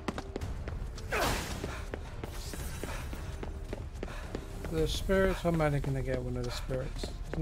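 Quick footsteps splash along wet pavement.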